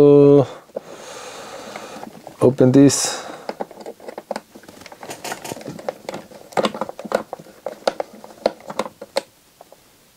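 A screwdriver turns small screws with faint clicks.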